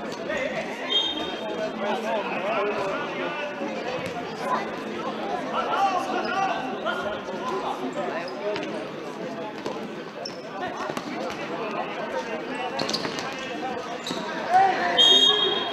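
Players' shoes squeak sharply on a hard floor.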